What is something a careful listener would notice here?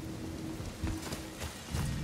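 Heavy footsteps thud on stone as a man runs.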